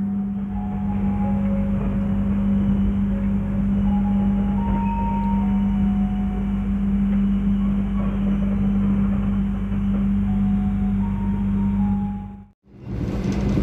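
A train rumbles steadily past.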